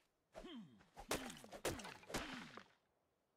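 An axe chops into a tree trunk with sharp thuds.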